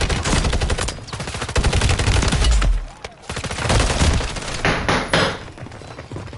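Gunfire and explosions crackle loudly from a game.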